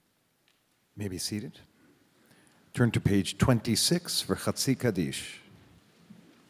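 A man speaks loudly through a microphone.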